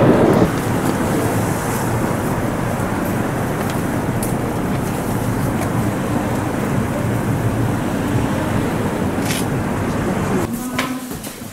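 City traffic rumbles along a busy street outdoors.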